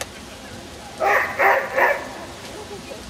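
A dog barks three times close by.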